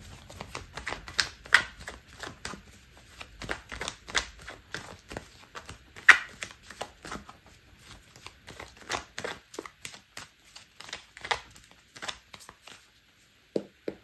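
Playing cards are shuffled with quick, crisp clicks.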